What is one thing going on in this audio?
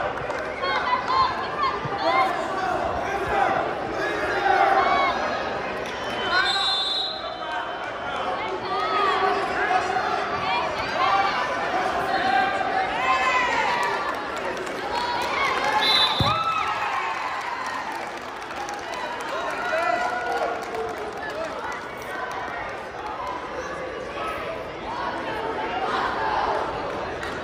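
A crowd of spectators chatters and shouts throughout a large echoing hall.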